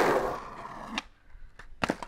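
A skateboard snaps and clacks as a skater jumps.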